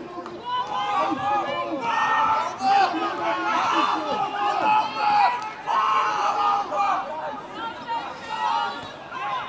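Young boys shout and call out to each other across an open field outdoors.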